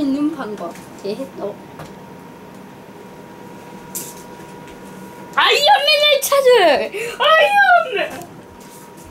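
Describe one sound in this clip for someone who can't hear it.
A young boy speaks loudly and excitedly close by.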